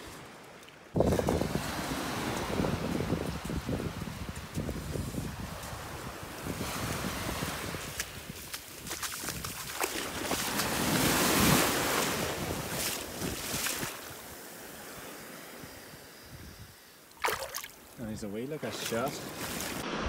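Shallow waves wash and fizz over sand close by.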